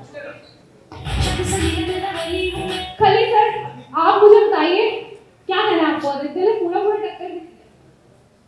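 A woman speaks with animation through a microphone and loudspeaker.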